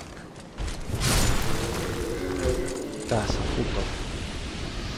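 A sword swings and strikes with a heavy clash.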